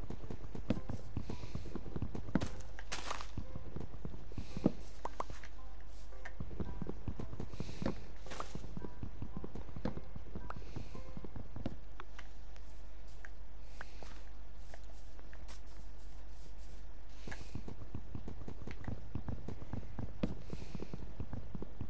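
Wooden blocks are chopped with quick, repeated knocks.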